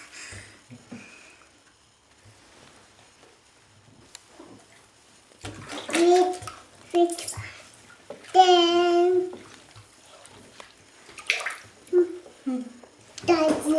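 Water splashes gently in a bathtub.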